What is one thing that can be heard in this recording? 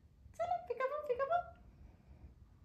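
A woman speaks softly and playfully close by.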